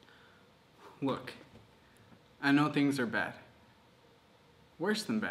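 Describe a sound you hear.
A young man speaks calmly and close by, in short bursts with pauses.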